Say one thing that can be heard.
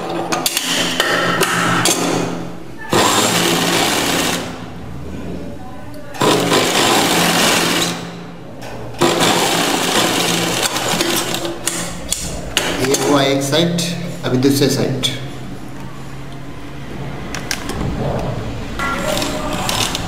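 A sewing machine whirs as it stitches fabric.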